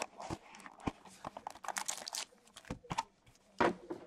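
A cardboard box flap is pried open with soft scrapes and taps.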